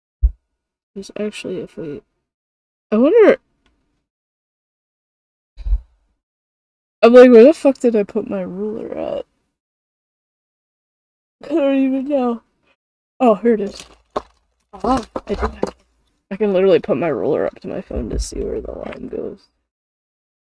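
A young woman talks into a close microphone with animation, in bursts with pauses.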